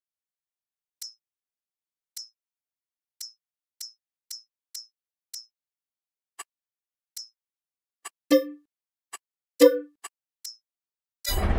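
Menu clicks tick one after another.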